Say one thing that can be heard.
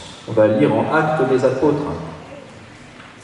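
A man speaks briefly into a microphone in an echoing hall.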